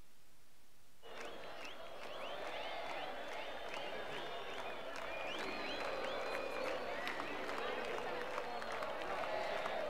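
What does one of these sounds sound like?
A large crowd cheers and whistles loudly in a huge open arena.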